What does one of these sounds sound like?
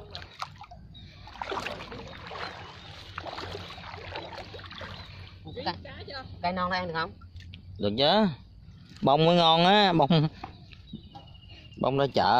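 Water splashes softly as plants are pulled up by hand.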